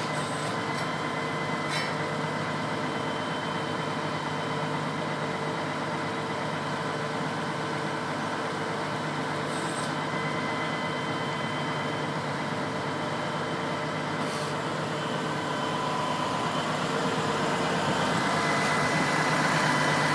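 A tractor engine hums steadily nearby, growing louder toward the end.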